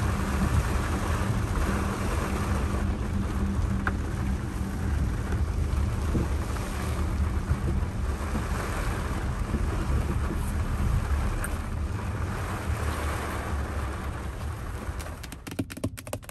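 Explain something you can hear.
Rain patters steadily on a car window.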